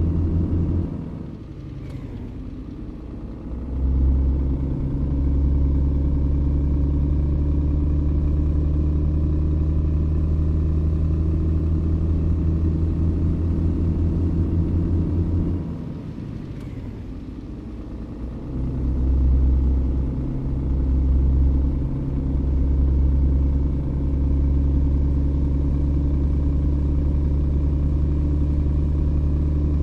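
A heavy diesel truck engine drones as it accelerates under load.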